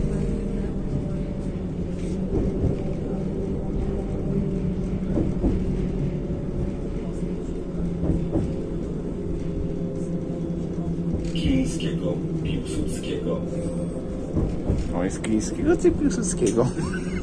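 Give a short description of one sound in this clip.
A tram hums and rumbles steadily as it rolls along.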